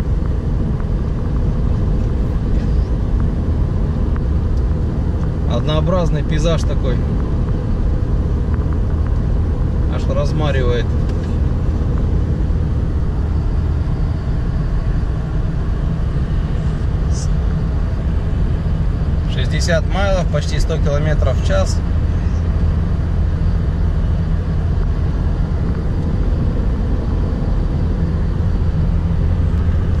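Tyres roll steadily along a road.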